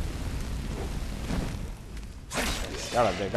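A stream of fire roars and crackles.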